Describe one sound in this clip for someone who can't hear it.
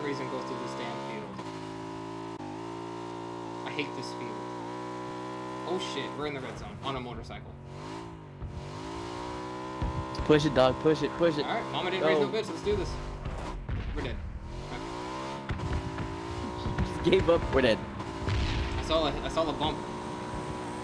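A motorbike engine drones steadily, rising and falling in pitch as it revs.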